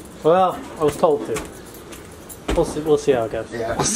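Footsteps thump on a wooden porch.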